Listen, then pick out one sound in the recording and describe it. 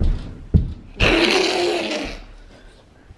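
A young child lets out a loud growling roar.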